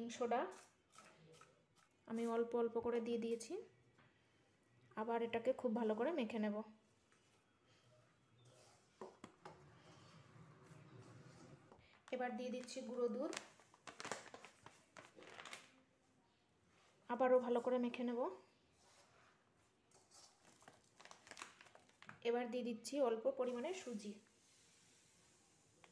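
A plastic packet crinkles.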